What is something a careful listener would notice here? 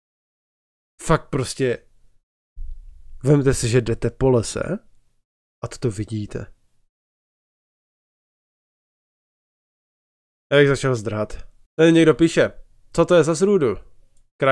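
A young man speaks with animation close to a microphone, in short bursts.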